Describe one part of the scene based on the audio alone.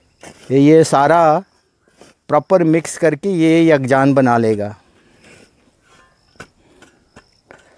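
A shovel scrapes and digs into loose soil.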